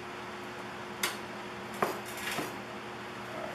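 Metal clanks against a tin can.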